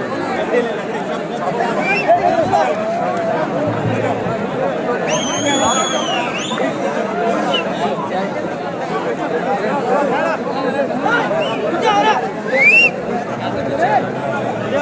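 A large crowd of men chatters and shouts loudly outdoors.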